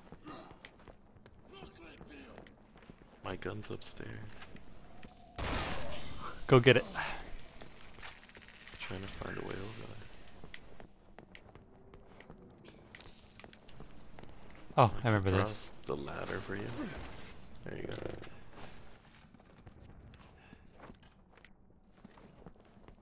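Footsteps crunch on gritty ground.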